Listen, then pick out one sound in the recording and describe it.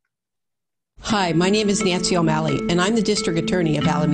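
A middle-aged woman speaks calmly through a loudspeaker.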